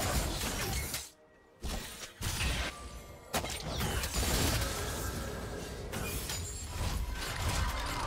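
Game spell effects whoosh and crackle in a battle.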